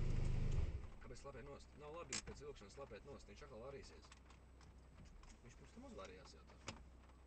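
A man talks close by inside a car.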